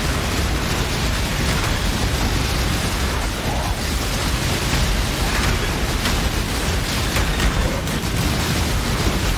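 Magic blasts crackle and boom in rapid succession.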